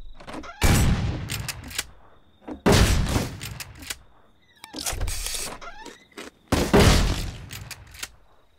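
Gunshots ring out loudly with a short echo, a few seconds apart.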